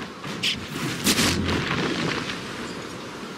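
A loud explosion booms close by.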